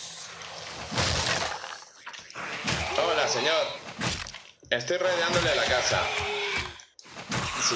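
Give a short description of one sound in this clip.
A blade strikes flesh with heavy, wet thuds.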